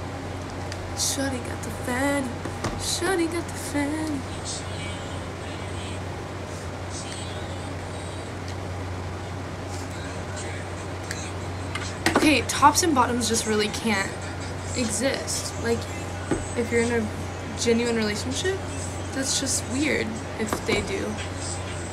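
A young woman talks casually and close to a phone's microphone.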